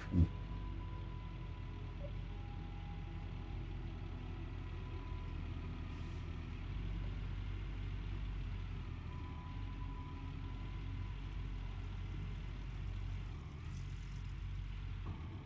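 A diesel excavator engine rumbles steadily.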